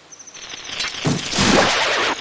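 A hookshot strikes with a sharp burst.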